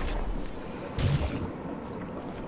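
A sci-fi gun fires with a short electric zap.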